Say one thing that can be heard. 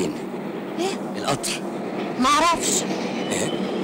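A young woman answers in an upset voice.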